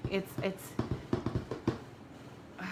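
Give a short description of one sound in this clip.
A plastic stamp block knocks and taps on a tabletop.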